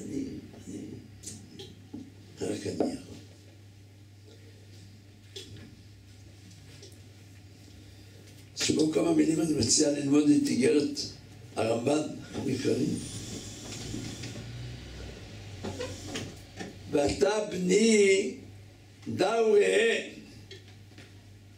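An elderly man speaks with animation through a microphone, in bursts with pauses.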